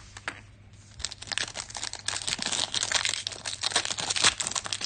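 A foil card pack crinkles and rips open.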